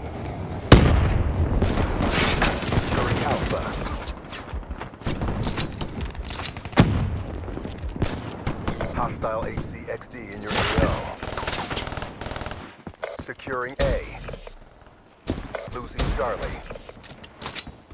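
Simulated gunshots crack in short bursts.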